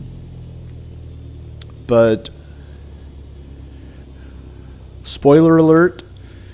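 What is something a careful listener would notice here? A small propeller plane's engine idles with a low, steady hum.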